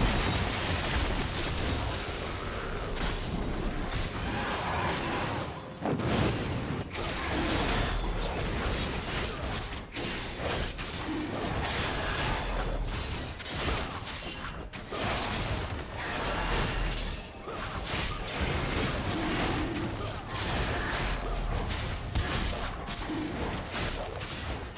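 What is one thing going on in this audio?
Magic blasts and hits crackle and boom in a fast fight.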